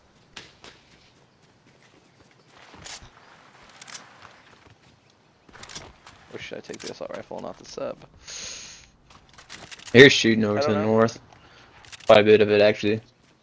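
Footsteps patter quickly over ground.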